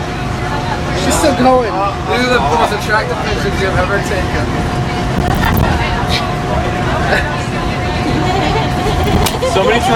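A teenage boy laughs nearby.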